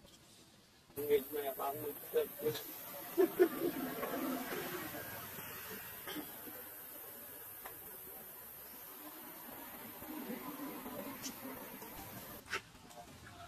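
Young monkeys squeal and chatter.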